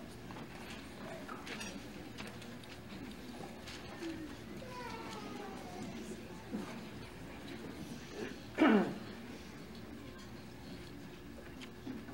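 A school band plays wind instruments in a large hall.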